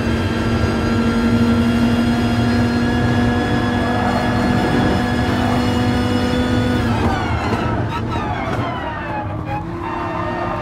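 A racing car engine roars at high revs, then drops in pitch as the car brakes and shifts down.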